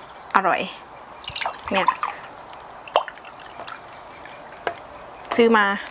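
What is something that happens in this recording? Liquid pours from a bottle into a mug.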